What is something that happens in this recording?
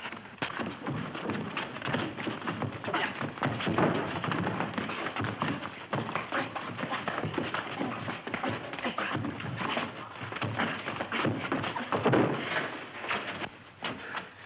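Boys scuffle and grunt in a fistfight.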